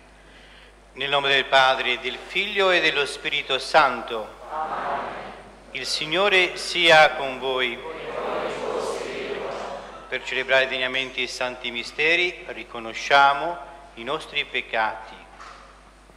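A man chants in a large echoing hall, heard through a microphone.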